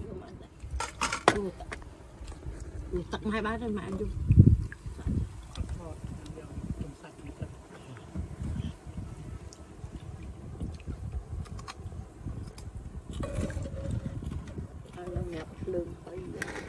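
A metal ladle clinks against a pot and bowls.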